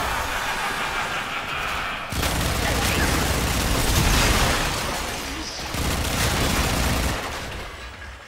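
Energy blasts roar and crackle loudly.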